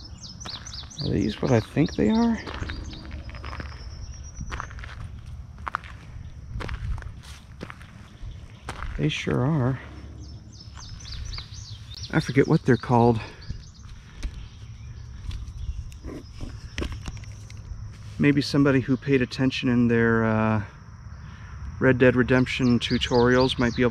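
A man talks calmly into a close microphone, in bursts.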